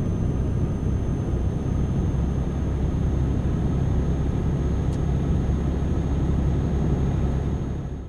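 Tyres roll over a rough road.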